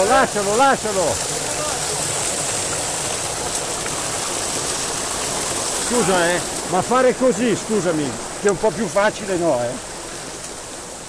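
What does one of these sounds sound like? A small waterfall splashes and gurgles close by.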